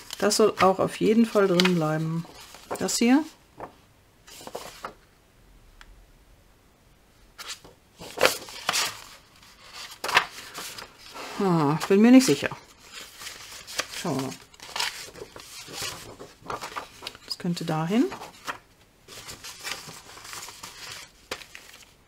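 Sheets of paper rustle and flap as they are handled.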